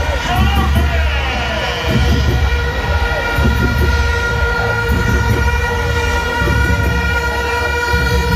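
A large stadium crowd chants and cheers loudly outdoors.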